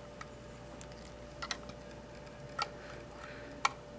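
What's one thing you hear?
A screwdriver scrapes and clicks against a small terminal screw.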